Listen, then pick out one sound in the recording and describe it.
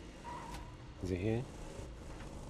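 A man speaks briefly into a microphone.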